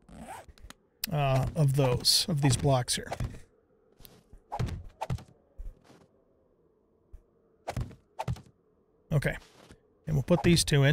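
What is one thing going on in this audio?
A man talks casually and close to a microphone, with pauses.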